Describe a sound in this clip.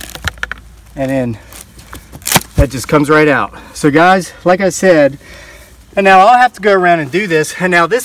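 An older man talks calmly, close by.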